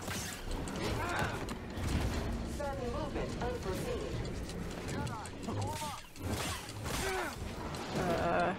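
Blades clash with sharp, sizzling impacts.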